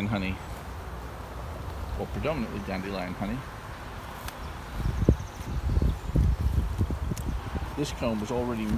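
Bees buzz around an open hive.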